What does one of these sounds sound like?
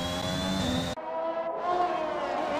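Another racing car roars past.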